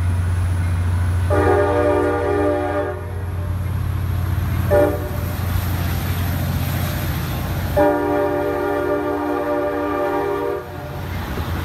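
A diesel locomotive engine rumbles deeply close by.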